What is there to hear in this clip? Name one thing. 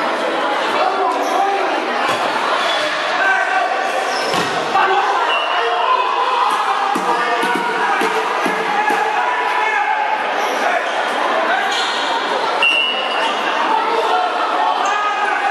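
A ball thuds as players kick it.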